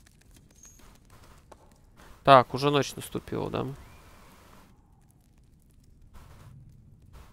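Footsteps tread slowly on a stone floor.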